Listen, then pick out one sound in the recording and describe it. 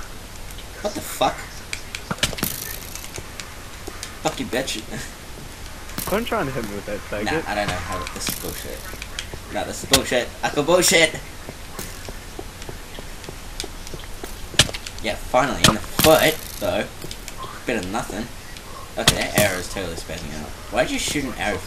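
A bow string twangs as an arrow is shot.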